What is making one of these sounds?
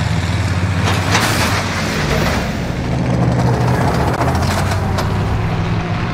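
Water splashes as a vehicle drives into the waves.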